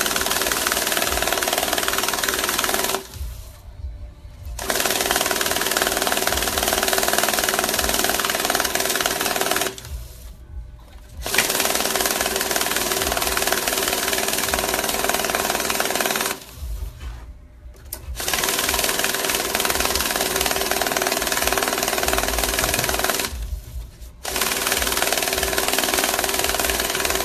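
A bill counting machine whirs rapidly as it riffles through banknotes, pausing briefly between batches.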